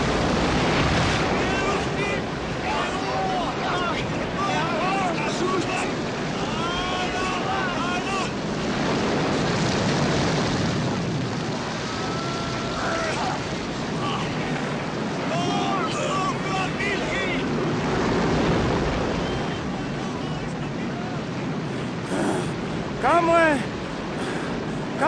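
Stormy wind and crashing waves roar throughout.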